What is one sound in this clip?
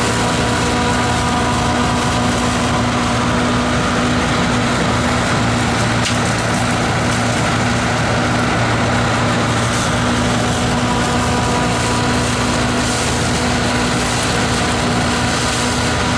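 Chaff and straw rustle and hiss as a combine harvester spreads them out behind it.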